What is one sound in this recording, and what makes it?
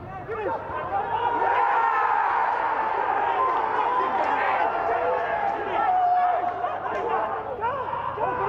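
Men shout excitedly across an open, echoing stadium.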